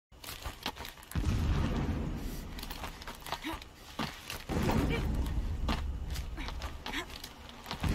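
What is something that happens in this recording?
Leafy plants rustle and swish as a figure pushes through them.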